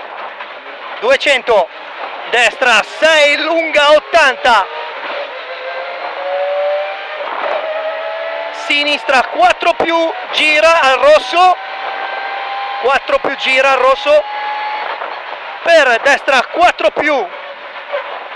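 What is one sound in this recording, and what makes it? A man reads out pace notes quickly over an intercom.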